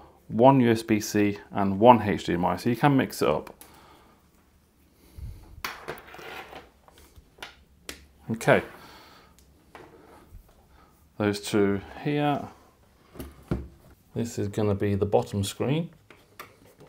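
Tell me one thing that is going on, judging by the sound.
Cables rustle and tap against a desk.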